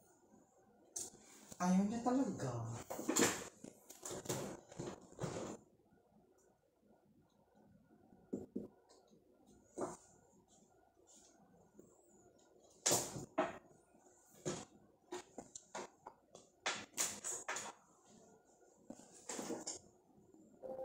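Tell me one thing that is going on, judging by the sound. An office chair creaks and knocks as someone shifts in it, close by.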